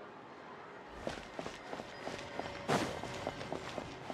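Footsteps tap quickly on stone paving.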